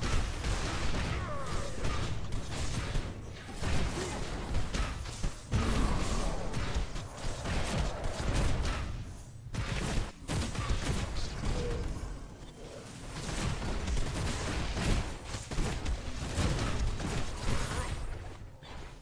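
Heavy blows and magical blasts crash and boom in a fast fight.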